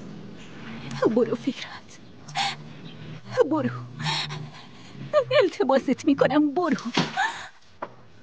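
A young woman speaks in a pained, tearful voice.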